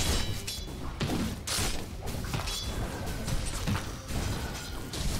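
Magical blasts whoosh and crackle in a rapid fight.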